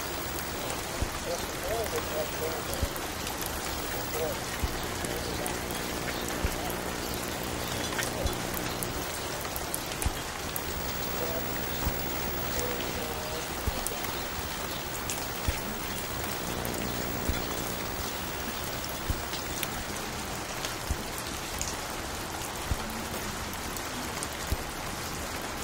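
Soft, muffled music plays from a record player.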